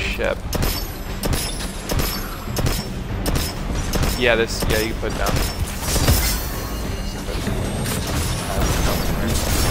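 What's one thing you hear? A heavy gun fires repeated loud shots.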